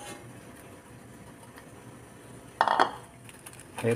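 A spoon clinks and stirs in a ceramic bowl.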